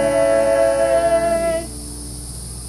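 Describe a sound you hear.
Acoustic guitars strum a final chord that rings out and stops.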